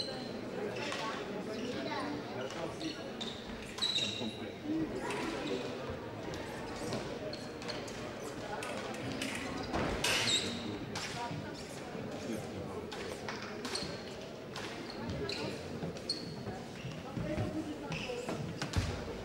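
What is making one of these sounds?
Fencers' shoes stamp and squeak on a hard floor.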